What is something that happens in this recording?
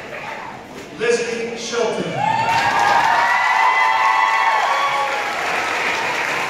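A woman cheers and shouts loudly close by.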